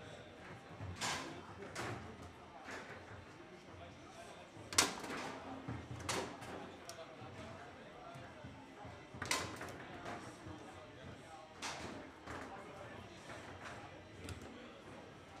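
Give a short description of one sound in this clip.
A foosball ball cracks against the rods and the table walls.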